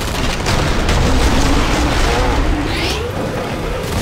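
Gunshots fire rapidly and loudly.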